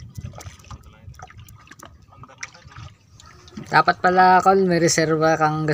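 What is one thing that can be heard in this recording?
A wooden paddle dips and splashes in open water beside a small boat.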